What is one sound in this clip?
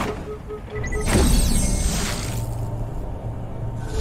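A whooshing swirl sweeps past.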